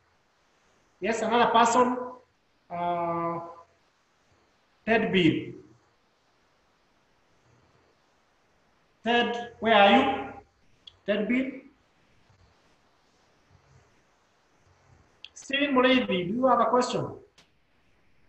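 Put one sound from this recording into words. A man speaks in short phrases with long pauses, heard through an online call.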